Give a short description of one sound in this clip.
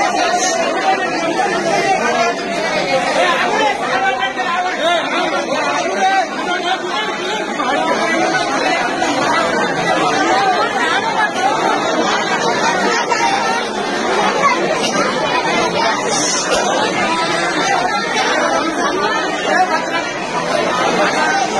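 A large crowd outdoors clamours and shouts all at once.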